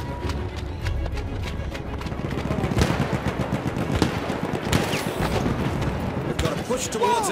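Explosions rumble and boom in the distance.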